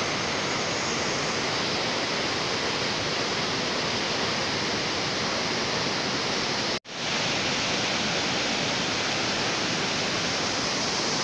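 A river rushes loudly over rocks, roaring steadily outdoors.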